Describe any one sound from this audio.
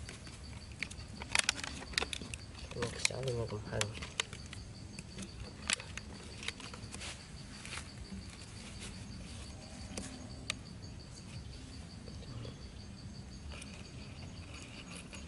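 A plastic bottle crinkles and clicks in someone's hands.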